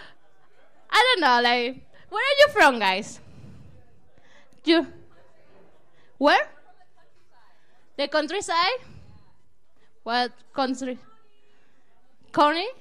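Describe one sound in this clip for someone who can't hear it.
A woman speaks with animation into a microphone, in short bursts with pauses.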